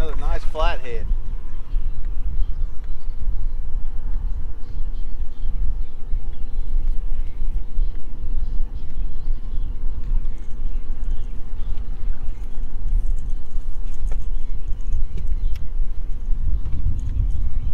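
A fish splashes at the water's surface.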